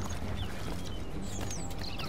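Footsteps slap on stone steps.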